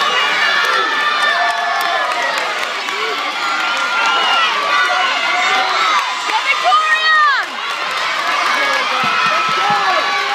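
A large crowd cheers and screams excitedly in a big echoing hall.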